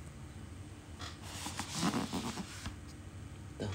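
A cardboard box scrapes and rustles as hands lift it.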